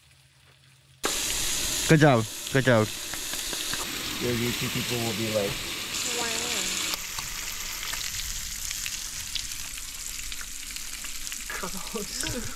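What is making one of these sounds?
Sausages sizzle steadily on a hot griddle.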